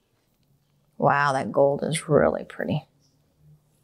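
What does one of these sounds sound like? An older woman speaks calmly close by.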